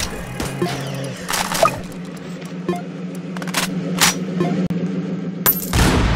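Guns fire in quick bursts of sharp shots.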